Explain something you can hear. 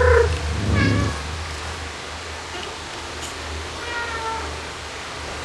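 A cat meows softly a few times.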